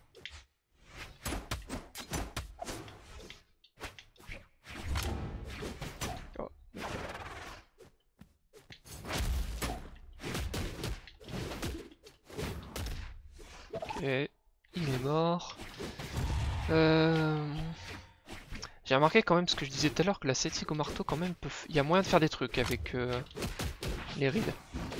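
Fighting game hits land with sharp thuds and swooshes.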